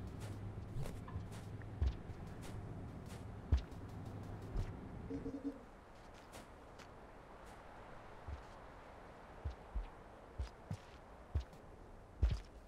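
Soft footsteps thud at irregular intervals.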